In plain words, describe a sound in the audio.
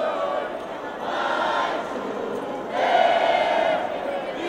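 Men shout with excitement close by.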